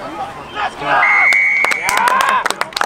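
A referee's whistle blows a short, sharp blast.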